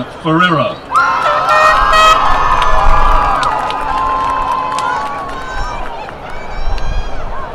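A crowd cheers and whistles outdoors.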